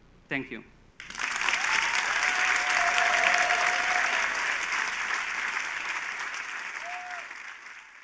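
An audience applauds loudly in a large room, then the clapping slowly fades.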